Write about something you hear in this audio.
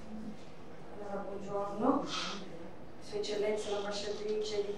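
A second woman speaks calmly into a microphone.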